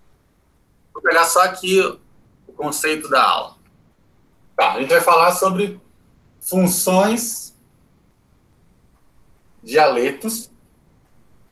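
A young man speaks calmly over an online call, pausing between phrases.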